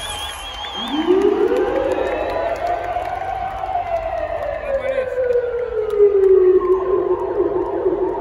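An electronic sound sweeps up and down in pitch through loudspeakers.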